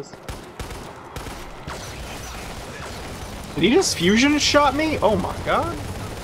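A machine gun fires in bursts.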